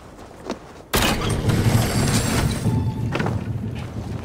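Someone climbs a creaking wooden ladder.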